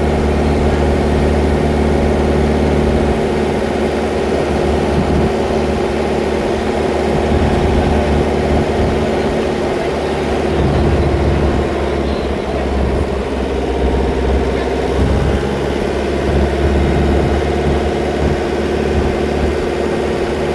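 A pickup truck drives along an asphalt road.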